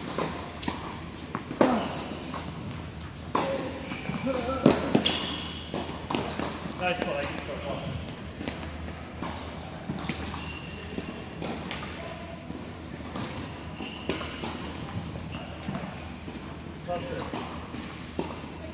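Tennis balls are struck with rackets, in a large echoing hall.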